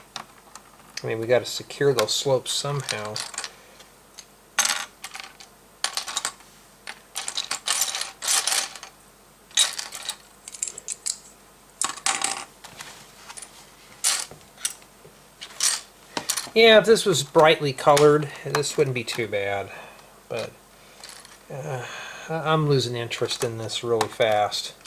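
Plastic toy bricks click and clatter as they are handled.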